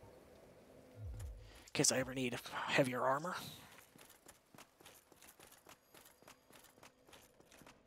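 Armoured footsteps run on stone.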